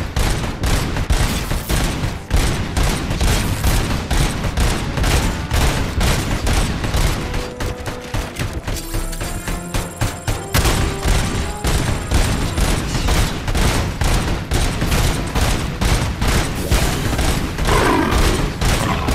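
Heavy guns fire back in loud bursts.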